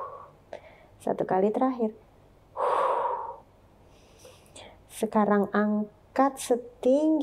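A young woman speaks calmly and clearly, close to a microphone.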